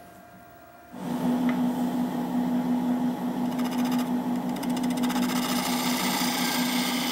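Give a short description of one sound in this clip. A wood lathe spins with a steady hum and whir.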